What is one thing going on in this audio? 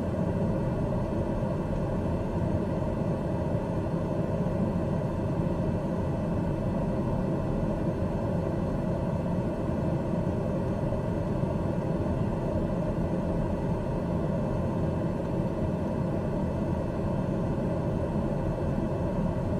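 An aircraft engine drones steadily and evenly.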